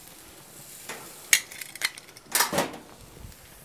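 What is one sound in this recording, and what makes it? Metal tongs clink against a grill grate.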